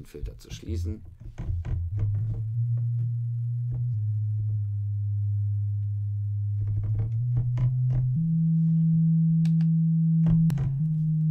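A synthesizer plays low, sustained bass notes that change pitch in steps.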